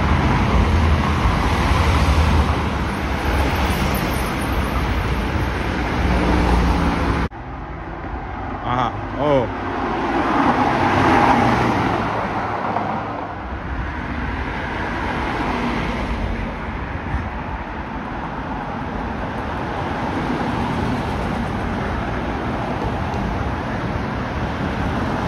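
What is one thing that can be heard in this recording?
Car engines rumble as cars drive past on a road.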